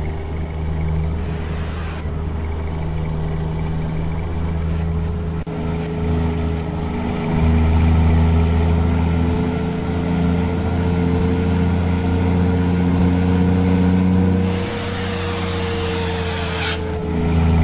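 A truck engine drones steadily, rising slightly in pitch as it speeds up.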